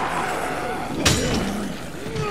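A metal bar strikes a body with a heavy thud.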